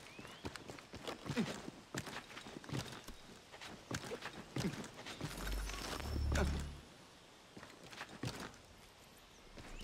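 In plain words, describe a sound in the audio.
Branches creak and rustle under a climber's hands and feet.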